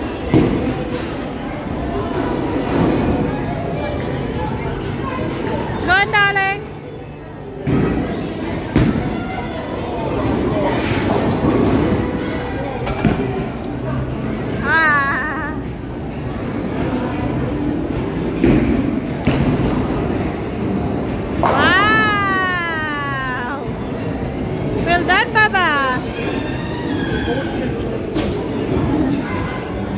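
The noise of a busy, echoing bowling hall goes on throughout.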